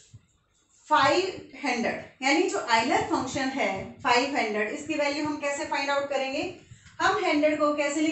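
A young woman speaks clearly and steadily, close by, as if teaching.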